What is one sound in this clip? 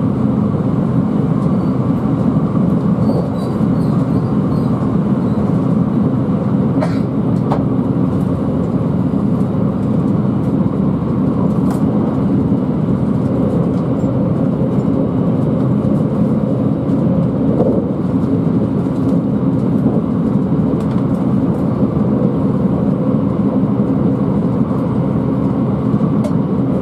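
Train wheels click over rail joints.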